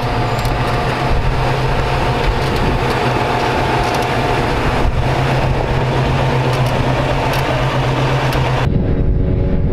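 An engine idles with a low steady rumble.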